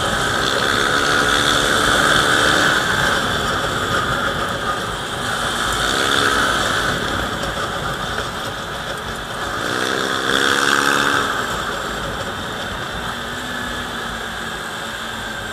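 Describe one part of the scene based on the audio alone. A scooter engine revs in bursts while riding.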